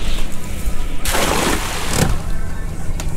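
A cast net splashes down onto water.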